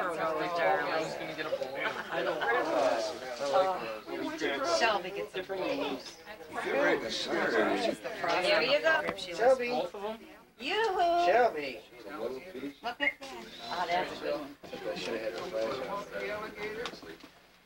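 A woman talks to a toddler close by.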